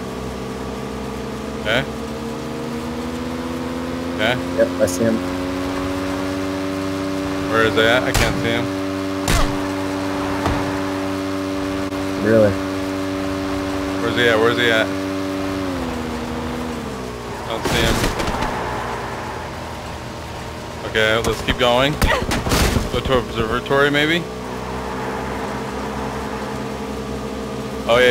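A motorcycle engine hums steadily, dropping in pitch briefly before picking up again.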